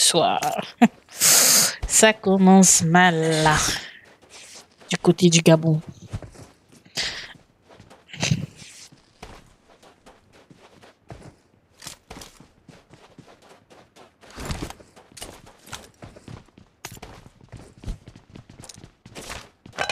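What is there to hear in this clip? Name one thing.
Footsteps crunch quickly on sand.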